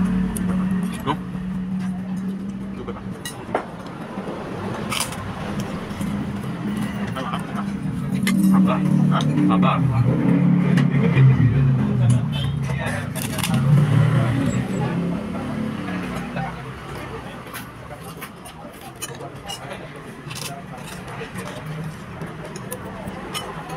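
A metal fork scrapes and clinks against a plate.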